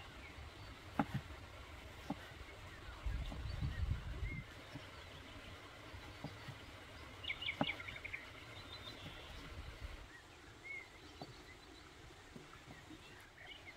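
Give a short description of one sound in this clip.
A knife chops tomato with quick knocks on a wooden board.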